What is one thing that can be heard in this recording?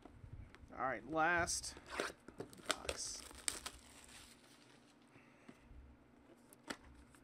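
Cellophane wrapping crinkles as a box is handled.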